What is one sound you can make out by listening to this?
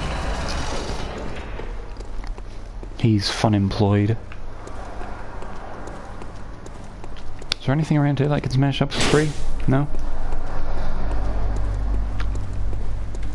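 Footsteps tread on stone paving.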